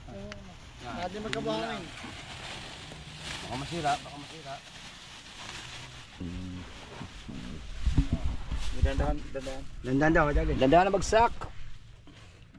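Men talk to each other close by.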